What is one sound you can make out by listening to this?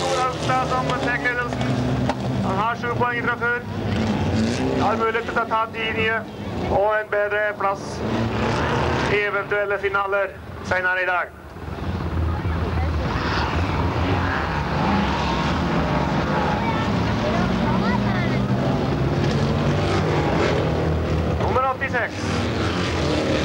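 Car engines roar and rev as cars race past.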